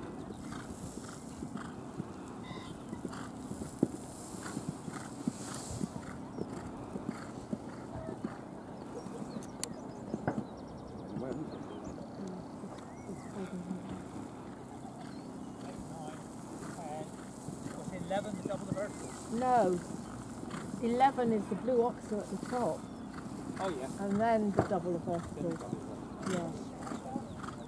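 A horse's hooves thud on gravel at a canter.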